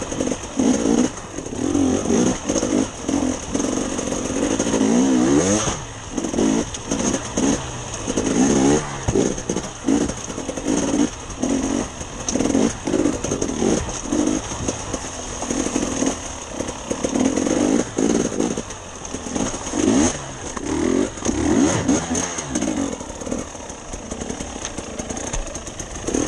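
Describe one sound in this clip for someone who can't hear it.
Tyres knock and clatter over rocks and logs.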